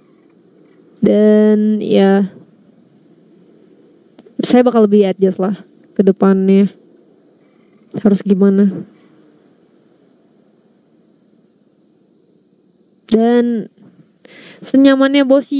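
A young woman speaks in short bursts into a close microphone, with animation.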